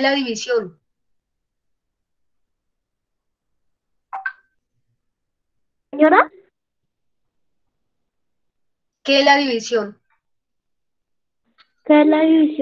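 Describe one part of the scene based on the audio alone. A woman speaks in short, separate phrases over an online call.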